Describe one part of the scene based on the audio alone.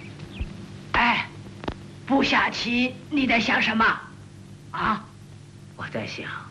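An elderly woman speaks with feeling, close by.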